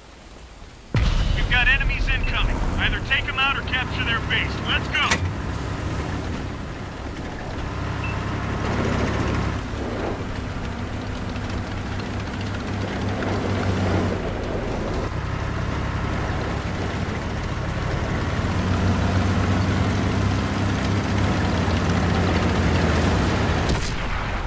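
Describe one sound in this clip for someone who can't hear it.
A tank engine rumbles low and steady as the tank drives.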